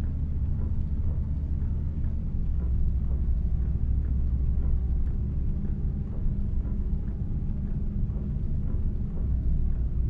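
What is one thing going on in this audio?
A bus engine rumbles steadily as it drives along.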